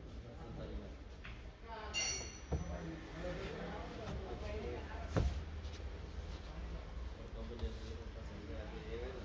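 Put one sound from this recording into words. Stiff fabric rustles as a panel is pressed into place.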